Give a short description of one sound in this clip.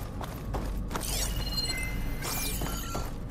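An electric field crackles and buzzes with glitchy tones.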